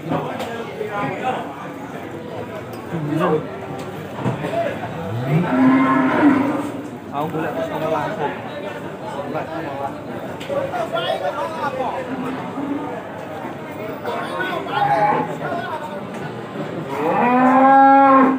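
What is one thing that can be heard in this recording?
Several people chatter in the background.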